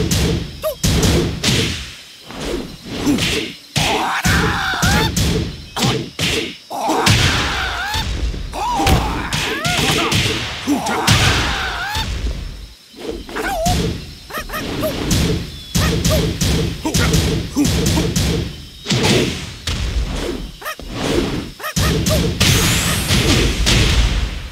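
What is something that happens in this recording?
Crackling energy bursts as blows hit.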